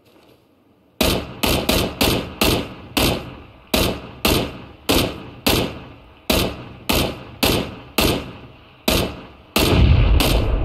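A rifle fires single shots one after another, each echoing away outdoors.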